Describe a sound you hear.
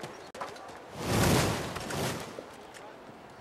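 A sword swings and strikes with a loud whoosh.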